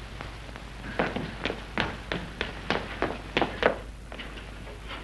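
Footsteps hurry up wooden stairs.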